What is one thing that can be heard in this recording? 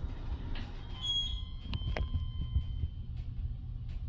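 An elevator chime rings with a short bright tone.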